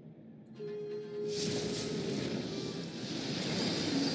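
A sword clashes against a monster.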